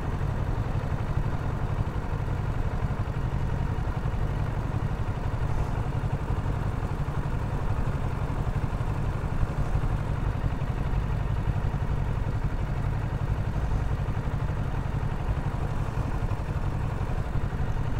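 A motorcycle engine idles steadily close by.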